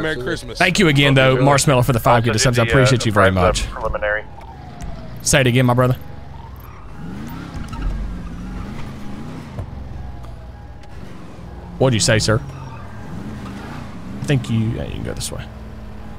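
A car engine hums and revs as the car drives.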